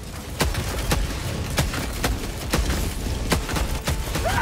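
Rapid gunshots fire in a game.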